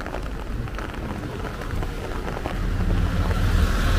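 Tyres hiss on the wet road.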